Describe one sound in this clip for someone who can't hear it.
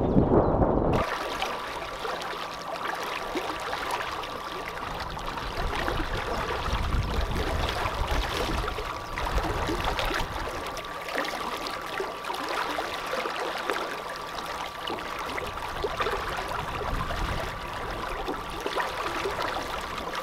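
Water splashes and laps against a small boat's hull.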